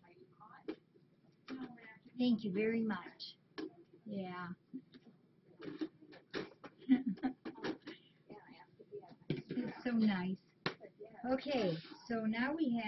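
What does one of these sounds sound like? A middle-aged woman talks casually and laughs, close to a microphone.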